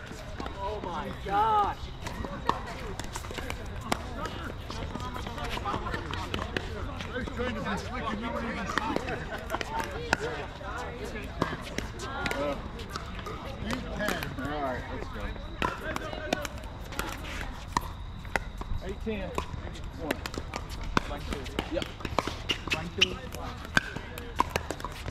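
Paddles strike a plastic ball with sharp pops.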